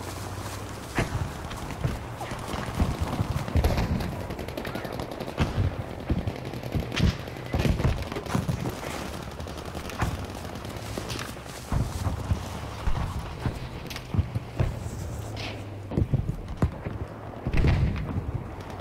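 Gunshots crack from a game, with a short echo.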